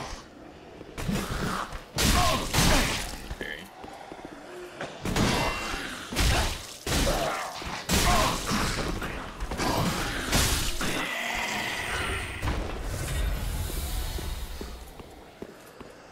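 Swords clash and strike bodies in a fierce fight.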